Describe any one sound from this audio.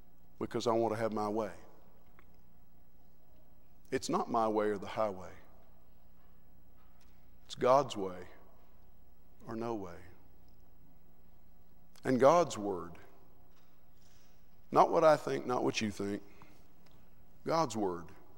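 A man preaches into a microphone in measured bursts with long pauses, echoing in a large hall.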